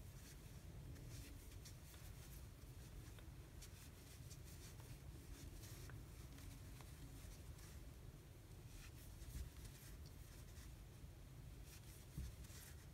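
Yarn rustles softly as a crochet hook works through stitches.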